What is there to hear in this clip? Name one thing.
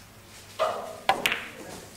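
Pool balls clack together.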